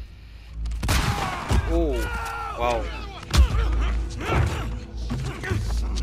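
A man shouts urgently.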